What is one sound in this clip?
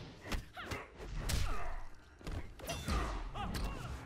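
A magical blast whooshes and bursts.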